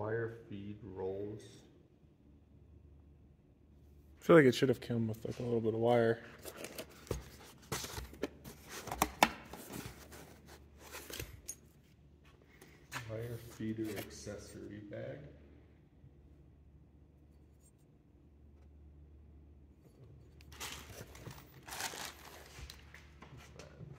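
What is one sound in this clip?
Paper rustles as pages turn.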